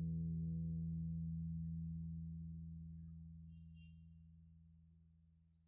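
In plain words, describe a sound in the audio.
An acoustic guitar's last chord rings out and slowly fades away.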